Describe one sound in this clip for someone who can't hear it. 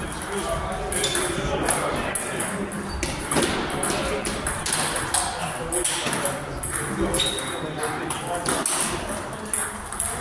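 A ball clicks back and forth across a table tennis table in a large echoing room.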